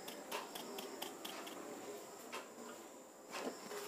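A plate taps against a metal bowl.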